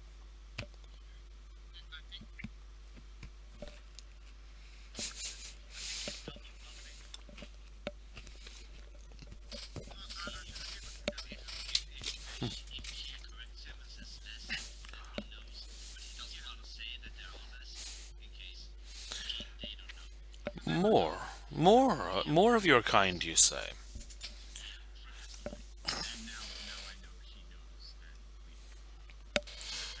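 Several men talk over an online call with headset microphones.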